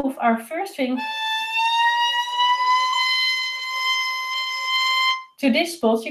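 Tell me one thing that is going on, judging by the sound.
A violin plays a long, steady note that rises slightly in pitch.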